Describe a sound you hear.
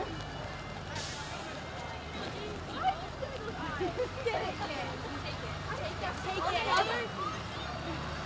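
Young girls chatter and call out nearby.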